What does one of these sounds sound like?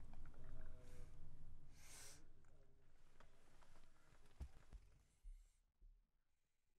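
A car engine rumbles low inside the car.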